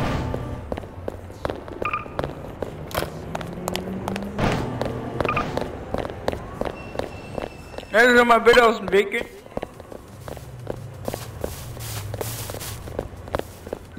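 Footsteps tap quickly on pavement.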